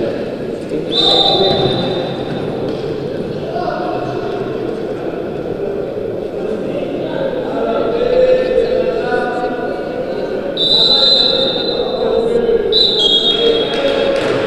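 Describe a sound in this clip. A referee's whistle blows sharply several times.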